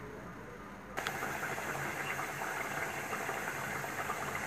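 A pot of stew bubbles and simmers.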